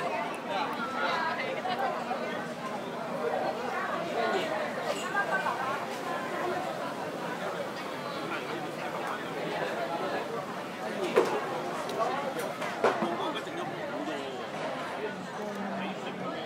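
A crowd of diners chatters all around.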